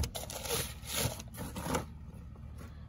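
Crumpled paper rustles and crinkles as a hand digs through it.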